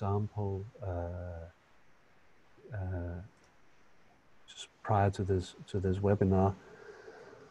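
A man speaks calmly and closely into a microphone, in short phrases with pauses.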